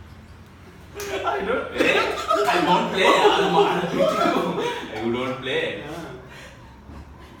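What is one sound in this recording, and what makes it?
Young men laugh nearby.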